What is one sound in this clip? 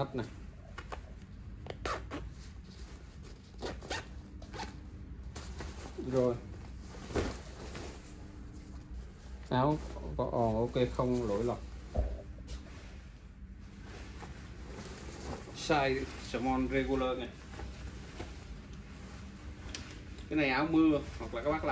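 A jacket's fabric rustles as it is handled.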